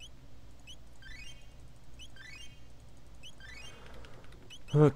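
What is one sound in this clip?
A rising chiming sparkle plays as a game character is healed.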